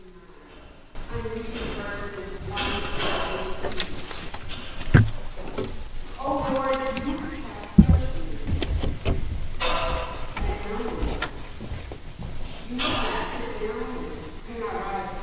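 An older woman reads aloud calmly through a microphone in an echoing room.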